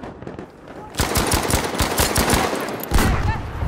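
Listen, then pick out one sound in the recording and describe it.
A rifle fires a rapid series of loud shots.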